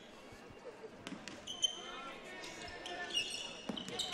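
Sneakers squeak on a wooden court in a large echoing hall.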